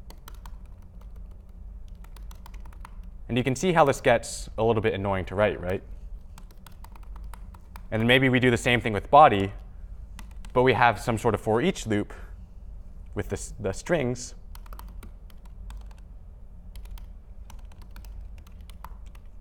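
Laptop keys click softly as a man types.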